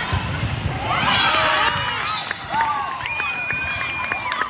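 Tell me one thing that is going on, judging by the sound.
Young girls shout and cheer together in celebration.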